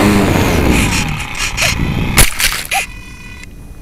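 A small craft crashes and thumps into grass.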